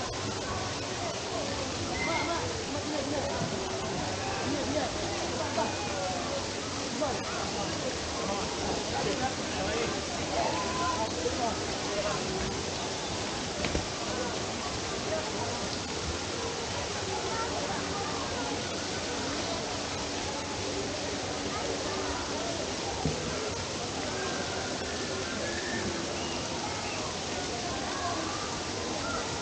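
Water splashes and trickles steadily.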